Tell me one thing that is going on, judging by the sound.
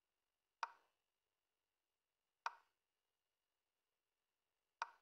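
A chess piece lands on a board with a short wooden click.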